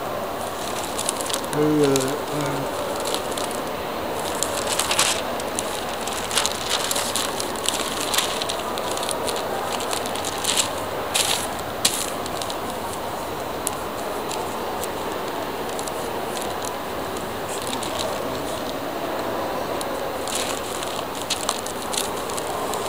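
Newspaper pages rustle and crinkle as they are handled.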